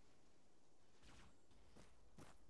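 Footsteps crunch on soft sand.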